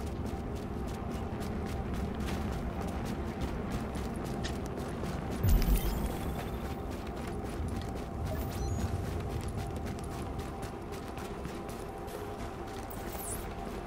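Running footsteps crunch on snow.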